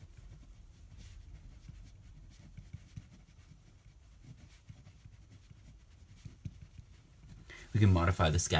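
A felt pen squeaks and scratches across paper.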